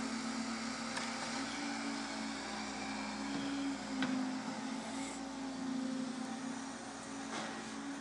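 Debris knocks and clatters as a demolition grab breaks a wall.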